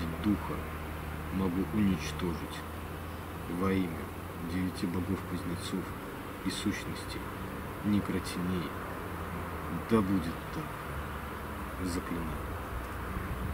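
A man reads out slowly in a low, solemn voice, close by.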